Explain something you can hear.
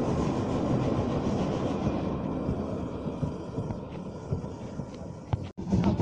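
A steam train chuffs and rumbles as it pulls away, slowly fading.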